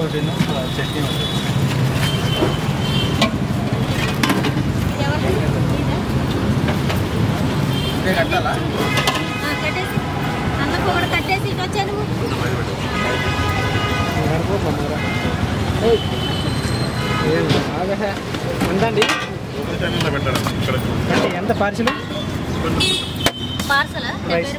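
Metal serving pots and lids clank.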